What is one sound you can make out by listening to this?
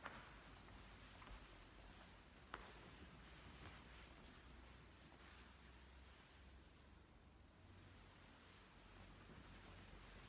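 Footsteps shuffle softly across a stone floor in an echoing space.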